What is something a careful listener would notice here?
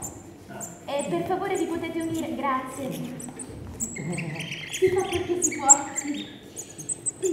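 A young woman sings in a large hall.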